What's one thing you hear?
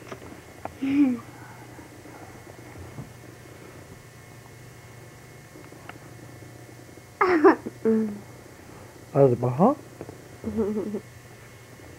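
A young girl giggles close by.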